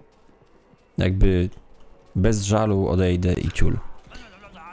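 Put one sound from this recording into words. A man speaks into a close microphone with animation.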